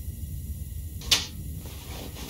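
A wooden cupboard door clicks open.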